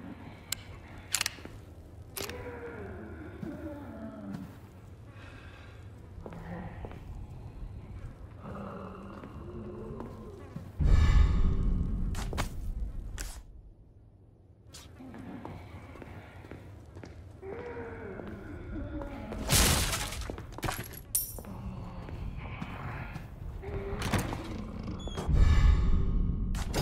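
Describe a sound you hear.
Footsteps tread slowly on a hard floor.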